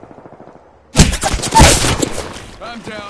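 Gunshots bang loudly in quick succession.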